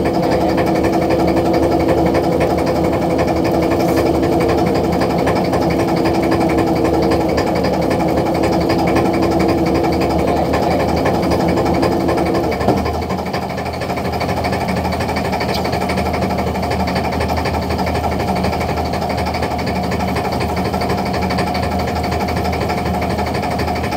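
A boat engine drones steadily throughout.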